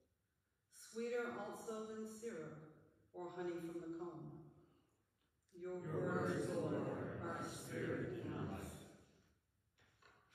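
An elderly woman reads out aloud into a microphone in an echoing room.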